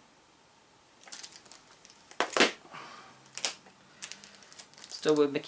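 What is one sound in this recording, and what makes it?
A plastic game case clatters as it is handled.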